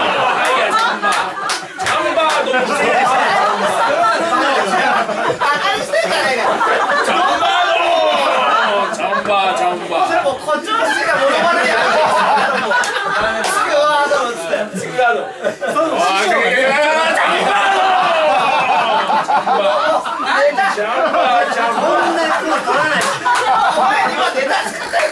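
A group of men laughs loudly.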